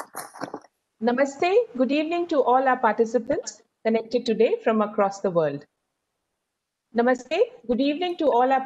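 A second woman speaks through an online call.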